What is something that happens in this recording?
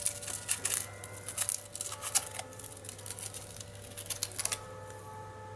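A hamster scratches and nibbles at a ball, making soft crackling rustles.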